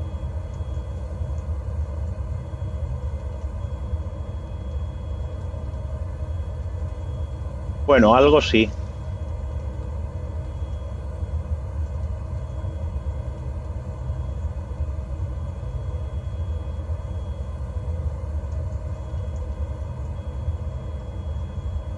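An aircraft engine hums low and steady.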